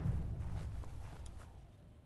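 Footsteps thud on a wooden bridge.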